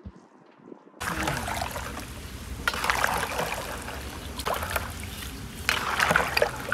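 A ladle stirs and sloshes water in a bowl.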